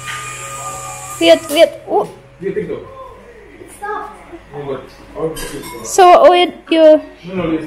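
A young child talks and shouts with excitement.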